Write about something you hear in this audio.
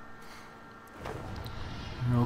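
A magical blast whooshes and rumbles.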